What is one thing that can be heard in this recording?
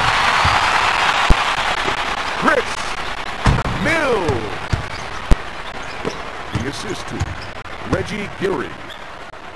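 An arena crowd cheers.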